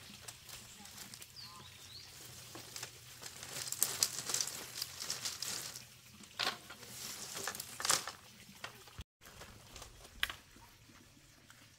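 Dry bamboo poles clatter and scrape as they are dragged and pulled apart.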